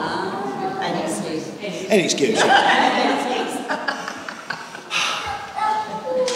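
A middle-aged man speaks calmly to an audience in a room with a slight echo.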